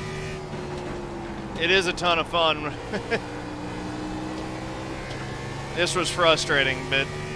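A racing car engine drones steadily.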